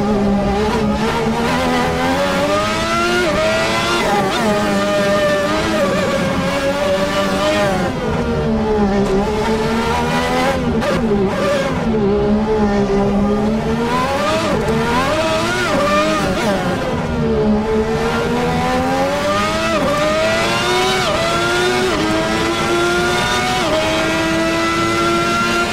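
A racing car engine screams, rising and falling in pitch as it shifts gears and slows for corners.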